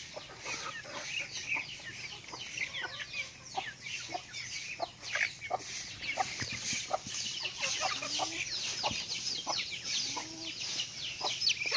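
Ducks quack and chatter.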